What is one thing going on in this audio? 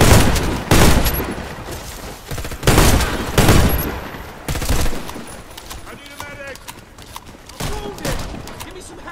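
Gunshots boom loudly in quick bursts, echoing off walls.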